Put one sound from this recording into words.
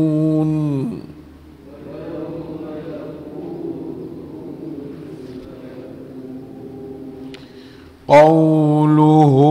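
An elderly man chants melodiously into a close microphone.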